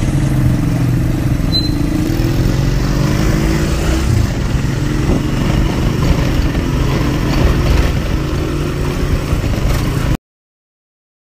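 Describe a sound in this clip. A motorized tricycle engine rumbles steadily.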